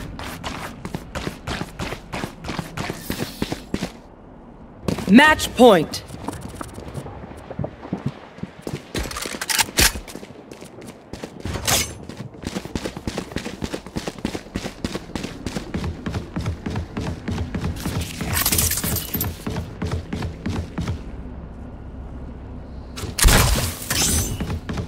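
Quick footsteps run over hard ground.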